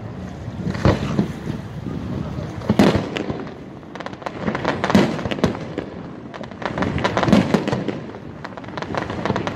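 Fireworks boom and echo in the distance.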